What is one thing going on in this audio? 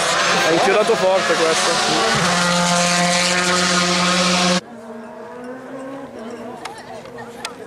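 A racing car engine roars loudly close by, then drops off sharply into the distance.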